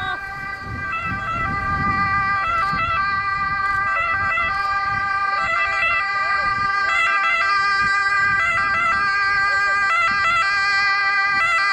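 An ambulance siren wails in a repeating two-tone pattern, close by.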